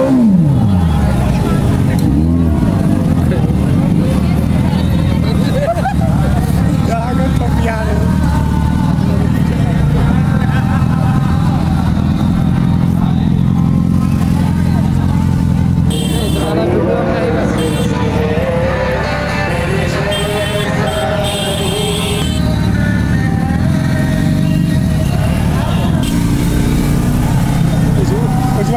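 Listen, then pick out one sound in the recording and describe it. A crowd of people chatter all around outdoors.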